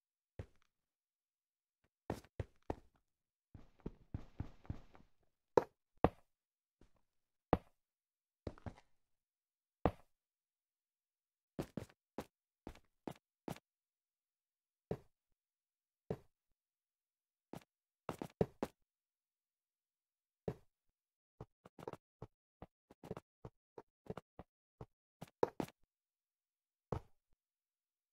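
Game blocks are placed with short, soft knocks, one after another.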